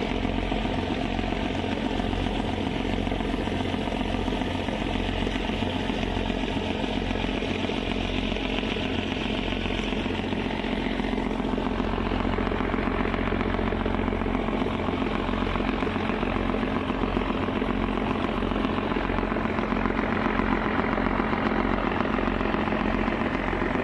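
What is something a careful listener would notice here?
Churning water rushes and splashes in a ship's wake.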